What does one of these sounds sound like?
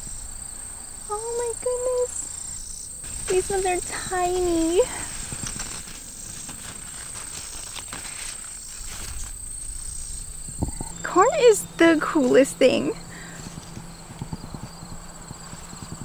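Corn leaves rustle as a hand brushes them.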